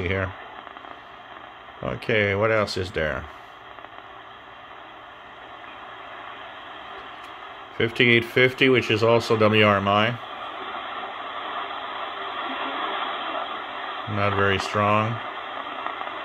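A man's voice speaks in short bursts through a small radio loudspeaker.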